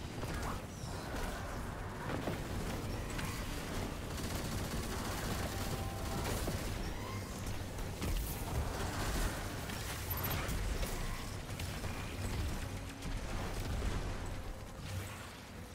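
Guns fire in rapid bursts with loud blasts.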